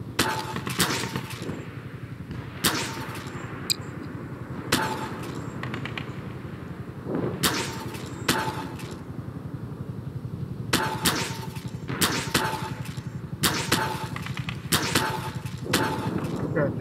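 A game tool gun fires with sharp electric zaps, again and again.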